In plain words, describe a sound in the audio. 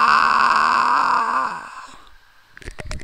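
A young man sings a long, loud note close to a microphone.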